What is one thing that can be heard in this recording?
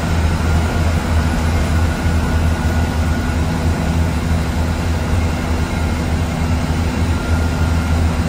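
A large vehicle's engine rumbles steadily inside the cab.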